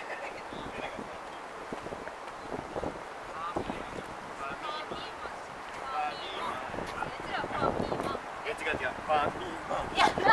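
Footsteps of passersby tap on paving nearby.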